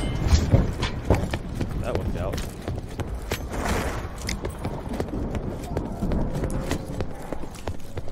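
Gunshots fire in quick, irregular bursts.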